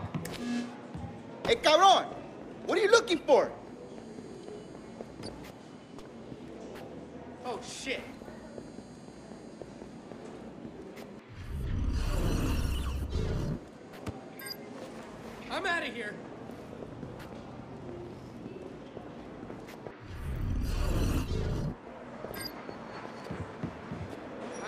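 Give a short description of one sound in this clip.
Soft footsteps patter on a hard floor.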